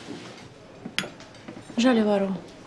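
A spoon clinks against a teacup.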